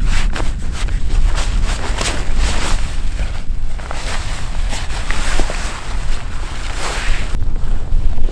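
A heavy bag scrapes and slides across ice.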